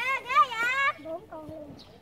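A young child speaks excitedly close by.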